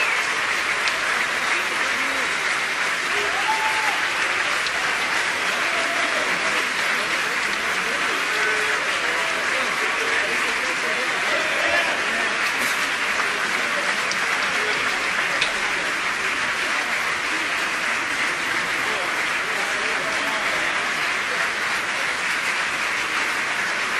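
Audience members cheer and whoop.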